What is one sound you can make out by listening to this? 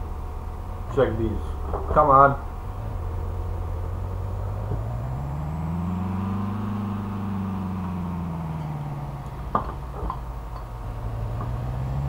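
A car engine hums, rising and then falling in pitch.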